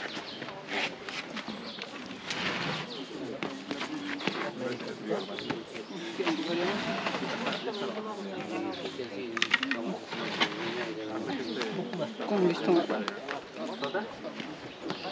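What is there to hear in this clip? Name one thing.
A crowd of men and women talks in the open air.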